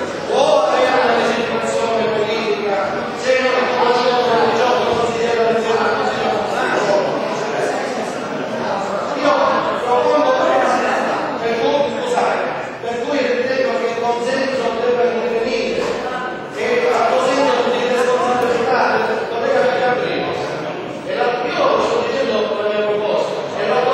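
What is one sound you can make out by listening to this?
An elderly man speaks loudly and with animation in a large echoing hall.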